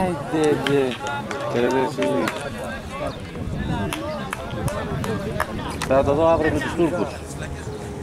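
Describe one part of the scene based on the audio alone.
Young men shout to each other outdoors across an open field.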